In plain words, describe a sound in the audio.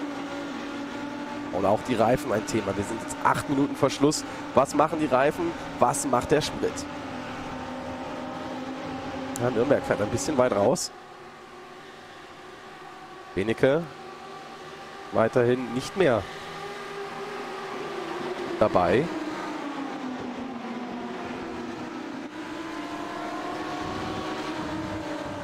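Racing car engines whine at high revs.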